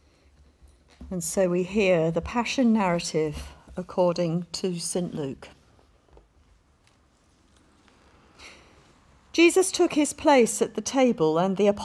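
A woman reads out calmly through a microphone in a hall.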